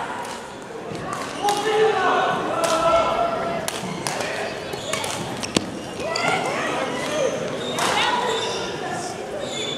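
Badminton rackets strike a shuttlecock with sharp pops that echo in a large hall.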